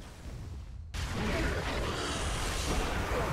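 An ice spell crashes and shatters.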